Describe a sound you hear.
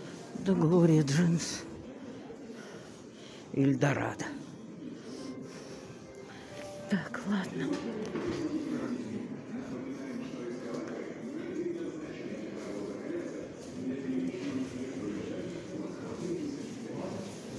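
A crowd of shoppers murmurs faintly in a large indoor hall.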